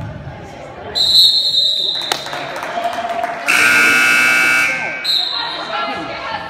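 A referee's whistle blows sharply in an echoing gym.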